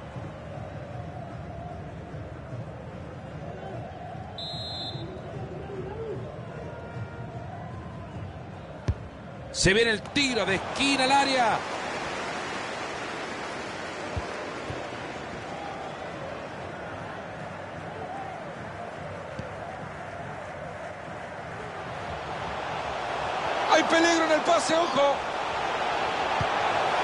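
A large stadium crowd roars steadily, swelling louder toward the end.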